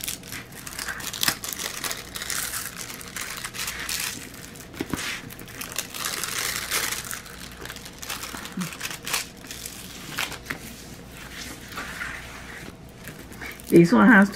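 Hands rustle and crinkle a plastic film.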